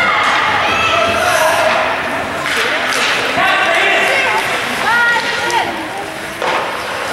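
Spectators shout and cheer nearby in a large echoing hall.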